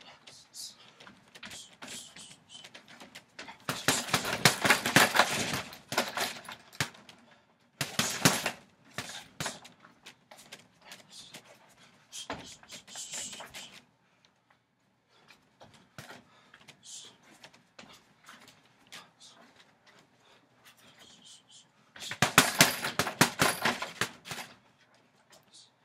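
Boxing gloves thud against a heavy punching bag in quick bursts.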